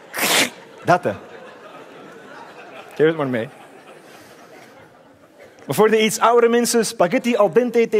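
A man speaks animatedly into a microphone in a large hall.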